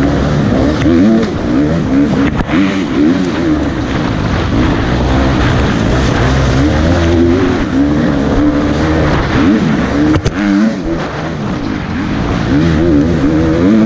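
Tyres crunch over a dirt trail.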